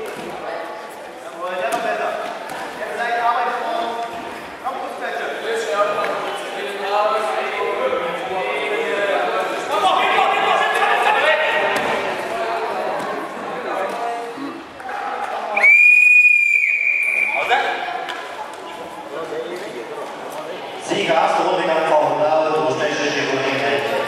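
Adults and children in a crowd shout and call out in an echoing hall.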